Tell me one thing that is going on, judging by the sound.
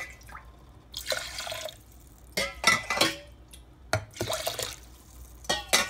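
Water pours and splashes into a metal pot.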